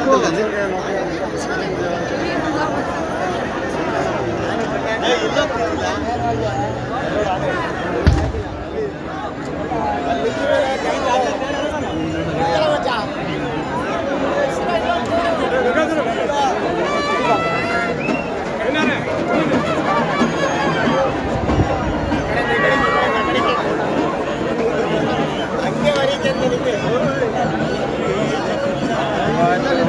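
A crowd of men chatter loudly all around, outdoors.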